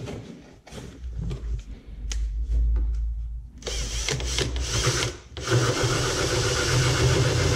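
A cordless drill whirs as it drives a screw into metal.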